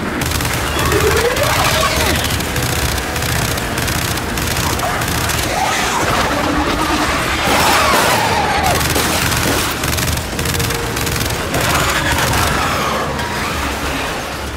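A monstrous creature shrieks and roars.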